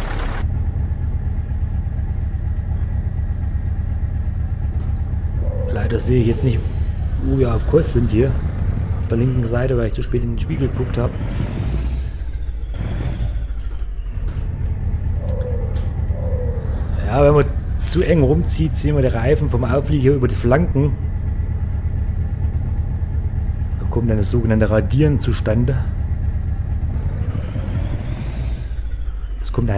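A truck engine hums steadily at low speed.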